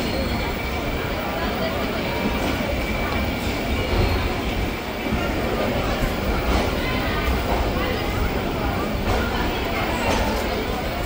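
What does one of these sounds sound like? A crowd murmurs with many voices in an echoing station.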